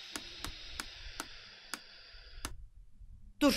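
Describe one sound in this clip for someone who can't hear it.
A prize wheel ticks as it spins and slows.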